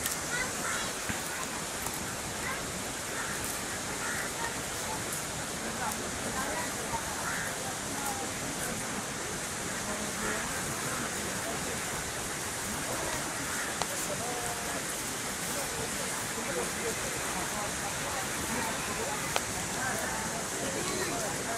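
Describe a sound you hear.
Men talk in the distance outdoors.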